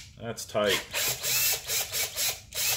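A cordless drill whirs as it drives a screw.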